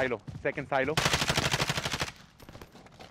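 Rapid gunfire rattles in a quick burst.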